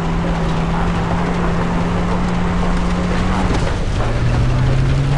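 An engine hums steadily and shifts pitch as it drives.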